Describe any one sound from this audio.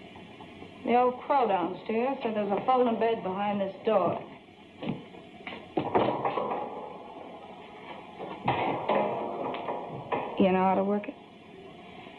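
A young woman speaks tensely, close by.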